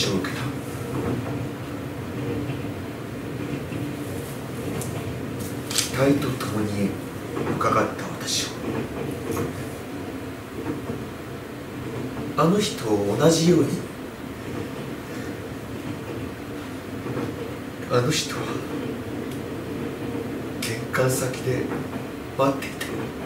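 A man reads aloud calmly.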